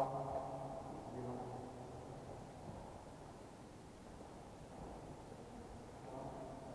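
A man talks calmly in a large echoing hall.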